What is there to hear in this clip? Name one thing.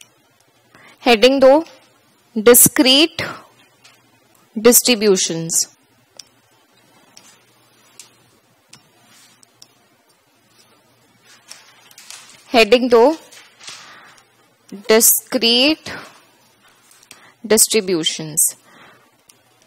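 A woman speaks calmly into a headset microphone, in short phrases with pauses.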